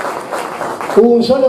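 A man speaks loudly into a microphone over loudspeakers.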